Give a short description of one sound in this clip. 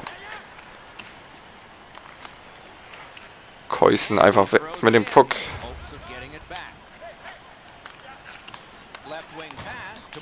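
Hockey sticks click against a puck.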